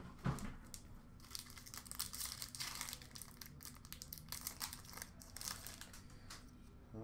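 A foil card wrapper crinkles as it is torn open.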